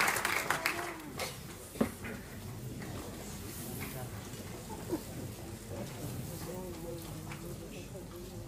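People in an audience murmur and chat quietly.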